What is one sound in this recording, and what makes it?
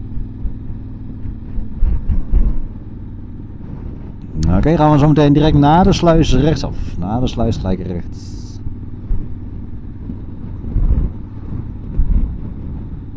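Wind buffets and rumbles past the rider.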